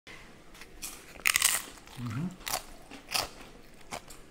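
A young woman smacks her lips while tasting food, close to a microphone.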